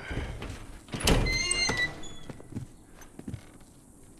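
Someone climbs up onto a window ledge with a scuff and a thump.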